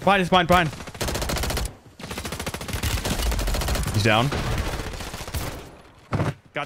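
A rifle fires rapid bursts close by.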